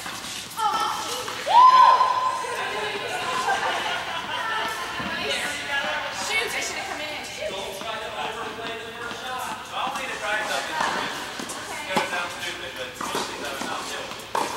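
Tennis rackets hit a ball back and forth in a large echoing indoor hall.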